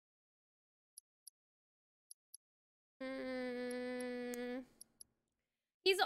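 Short menu blips sound as selections change.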